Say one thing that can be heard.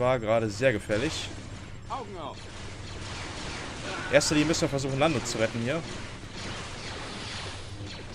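A lightsaber whooshes as it swings.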